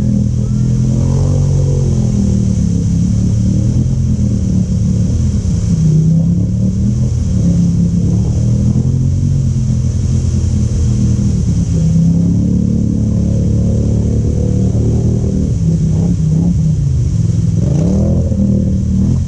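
An all-terrain vehicle engine revs loudly, rising and falling.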